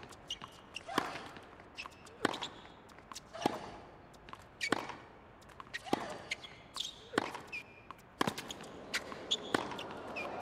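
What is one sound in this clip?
A tennis ball is struck hard back and forth in a quick, steady rally.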